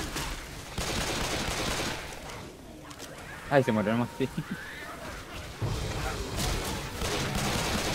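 A gun fires rapid shots in bursts.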